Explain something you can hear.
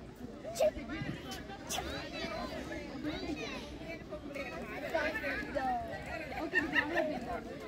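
A crowd of children and adults chatter and call out nearby outdoors.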